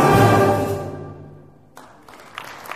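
A brass band's final chord rings out and fades in a large echoing hall.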